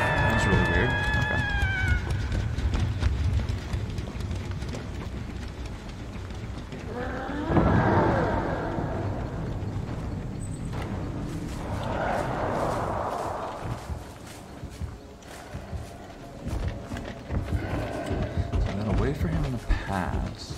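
Footsteps run quickly over grass and leaves.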